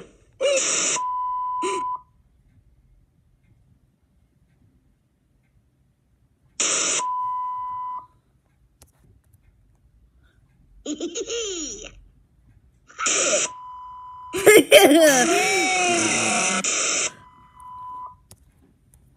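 A steady high electronic beep sounds, as of a lost signal.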